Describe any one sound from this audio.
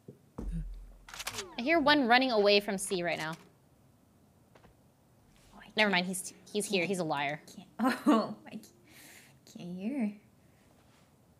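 A young woman talks calmly into a nearby microphone.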